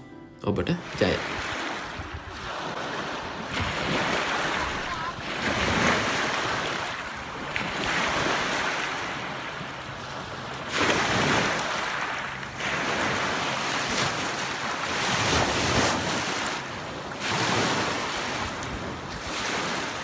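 Waves wash and break on a pebble shore, surging again and again.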